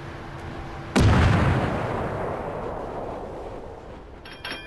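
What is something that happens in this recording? Heavy naval guns fire with a loud, booming blast that rumbles away.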